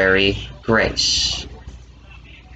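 A man speaks loudly and close by.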